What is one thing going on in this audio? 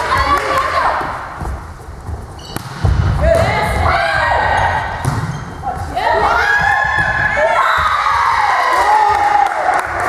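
A volleyball is struck by hand in an echoing sports hall.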